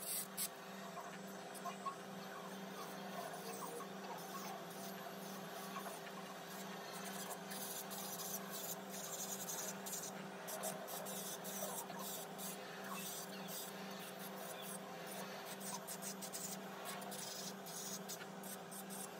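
An electric nail drill whirs steadily.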